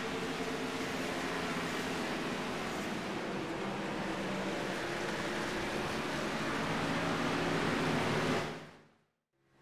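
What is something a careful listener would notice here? Racing car engines roar in a pack at high speed.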